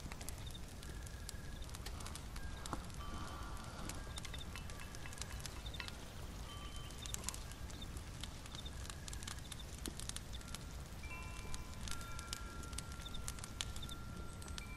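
A small fire crackles and pops softly.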